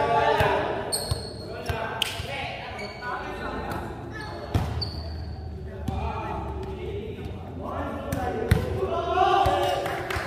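A volleyball thuds on a wooden floor and is struck, echoing in a large hall.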